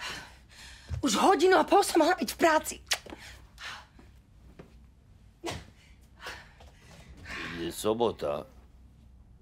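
A woman talks and laughs playfully close by.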